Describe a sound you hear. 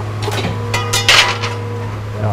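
A metal press thuds once.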